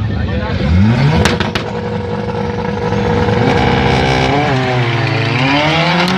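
A car engine revs loudly and roars away.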